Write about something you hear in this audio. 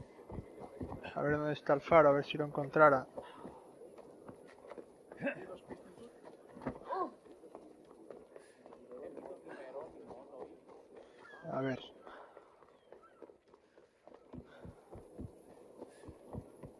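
Footsteps patter quickly on stone and wooden boards.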